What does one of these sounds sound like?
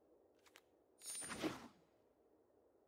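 A brief whooshing game effect plays as a card is picked.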